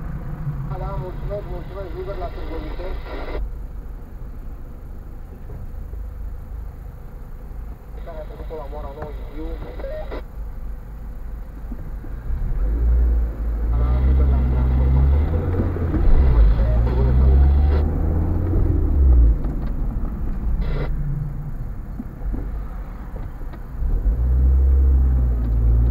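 A car engine hums low from inside the car and grows louder as the car speeds up.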